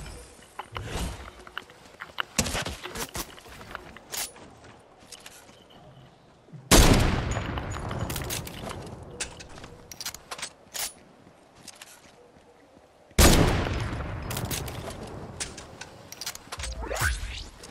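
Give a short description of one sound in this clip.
Footsteps crunch on snow and ice.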